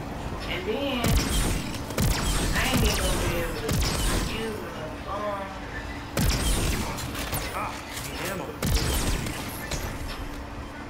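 A futuristic gun fires in loud bursts.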